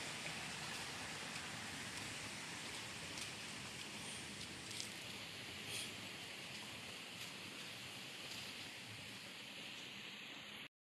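Shallow water trickles along a narrow ditch.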